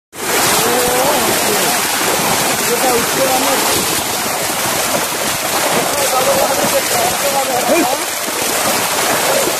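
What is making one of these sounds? Fish thrash and splash loudly in churning water.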